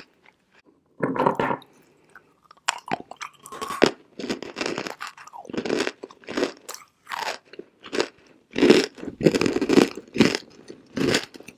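A young woman bites and crunches a hard chalky chunk close to a microphone.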